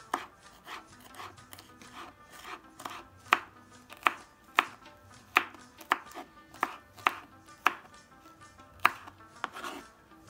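A knife taps sharply on a wooden board, chopping in an uneven rhythm.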